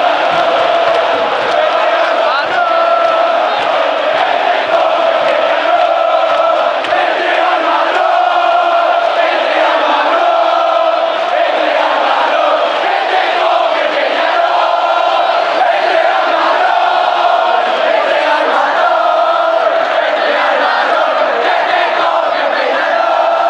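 A large stadium crowd chants and sings loudly and close by.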